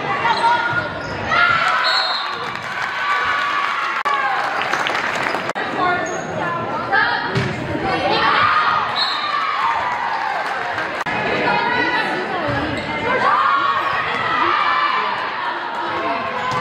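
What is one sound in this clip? A volleyball is struck with sharp thumps.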